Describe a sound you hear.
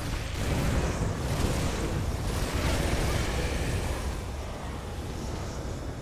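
Spells and weapon hits crash rapidly, one after another.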